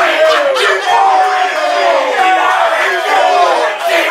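Men laugh excitedly.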